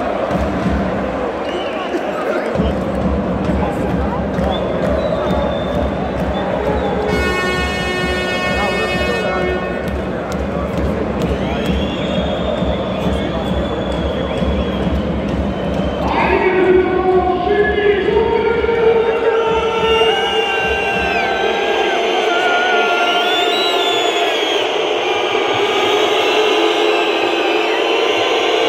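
A large crowd chants and cheers loudly in an echoing arena.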